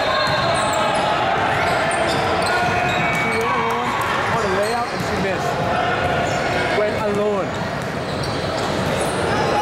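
Sneakers squeak on a hardwood court in a large echoing gym.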